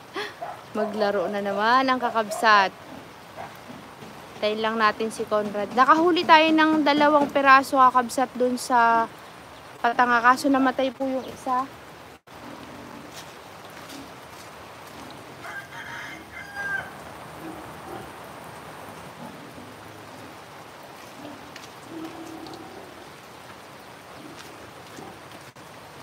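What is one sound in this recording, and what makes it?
Light rain patters steadily outdoors.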